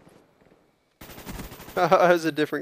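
A rifle fires a short burst of shots.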